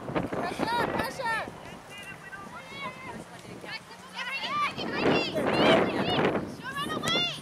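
Young women call out to each other at a distance outdoors.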